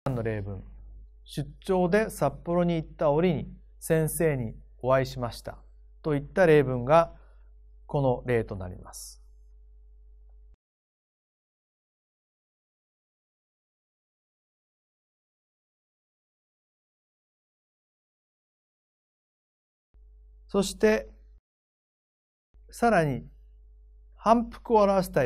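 A middle-aged man speaks calmly and steadily into a close microphone.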